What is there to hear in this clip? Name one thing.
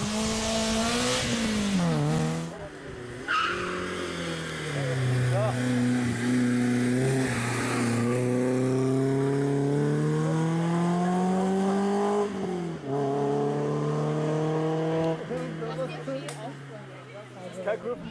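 A rally car engine revs hard and shifts up through the gears as the car speeds past and away.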